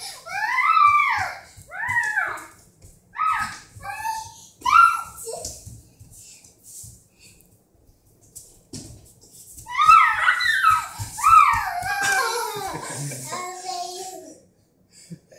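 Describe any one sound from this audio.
A small child squeals and shrieks playfully nearby.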